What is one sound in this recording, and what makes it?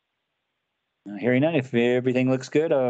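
A person speaks calmly over an online call.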